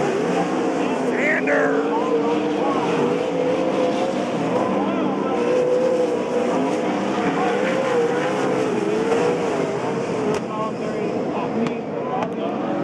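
Racing car engines roar and whine as they speed past.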